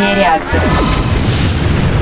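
A laser weapon fires in short zaps.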